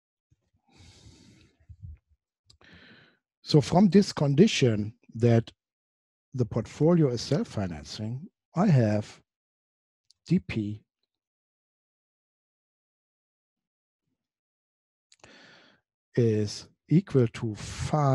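A man lectures calmly into a close microphone, with pauses.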